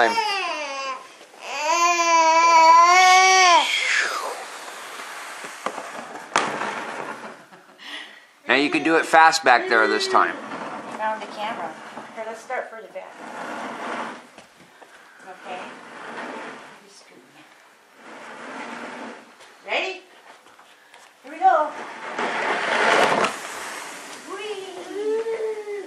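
A baby babbles and squeals excitedly close by.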